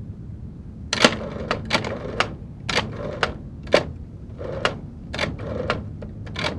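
A rotary telephone dial clicks as it turns and whirs back.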